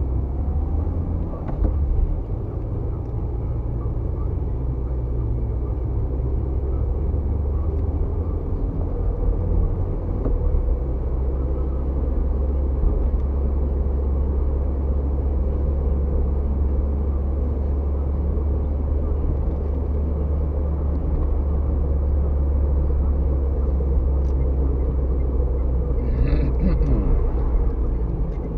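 Tyres roll on the road with a low rumble.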